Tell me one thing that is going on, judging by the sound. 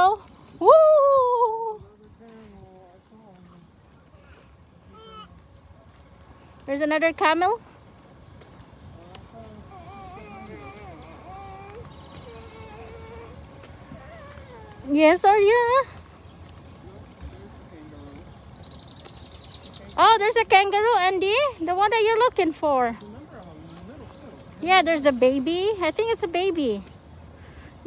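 A small child squeals and babbles loudly close by.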